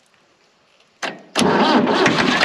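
An old tractor engine sputters and starts.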